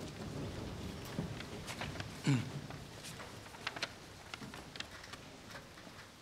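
A large seated crowd murmurs quietly in an echoing hall.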